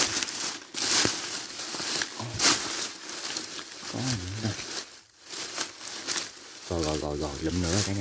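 Dry leaves rustle and crackle as a hand digs through them.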